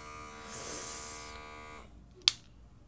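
A small device buzzes steadily against skin.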